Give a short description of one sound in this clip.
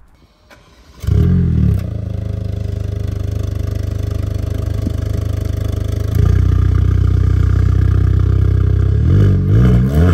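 A car engine starts with a roar and idles with a deep rumble.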